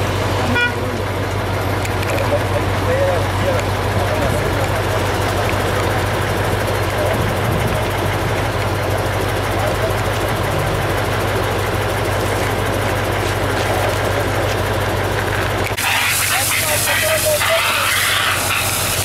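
Men talk quietly nearby outdoors.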